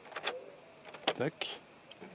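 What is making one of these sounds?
Toy piano keys click as they are pressed.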